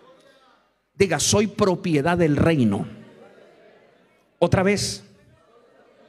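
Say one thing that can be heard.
A middle-aged man preaches with emotion into a microphone in a large echoing hall.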